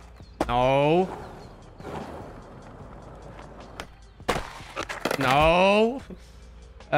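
Skateboard wheels roll on smooth concrete.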